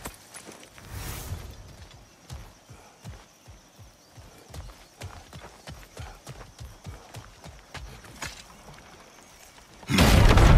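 Heavy footsteps crunch on dirt and then thud on wooden planks.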